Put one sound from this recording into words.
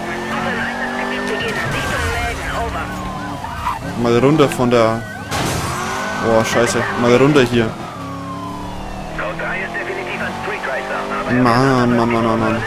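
A sports car engine roars and revs up and down at high speed.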